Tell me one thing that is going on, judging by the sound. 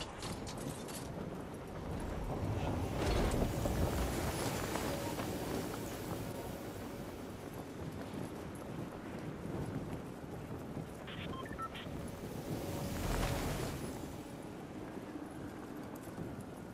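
Wind rushes steadily past during a glide through the air.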